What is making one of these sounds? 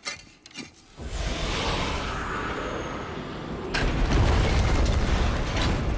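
Magic energy rushes and roars loudly.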